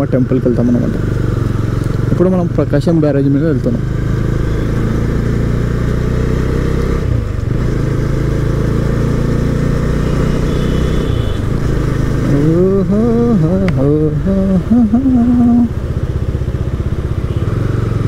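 Wind rushes past a moving rider outdoors.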